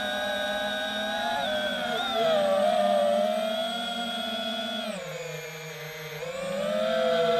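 Drone propellers whine steadily, their pitch rising and falling as the drone moves.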